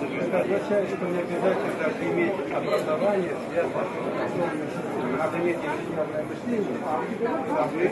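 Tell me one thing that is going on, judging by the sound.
An elderly man speaks calmly up close.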